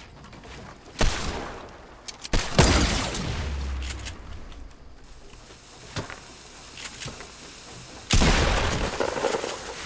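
Wooden panels clatter and thud as they are quickly built.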